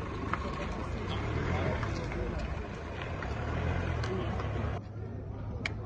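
A crowd of men and women murmurs nearby outdoors.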